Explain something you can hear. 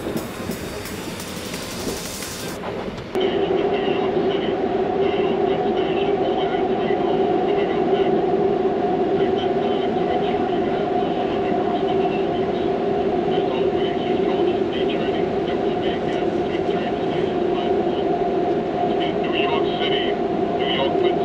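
A train rumbles and hums steadily along the tracks.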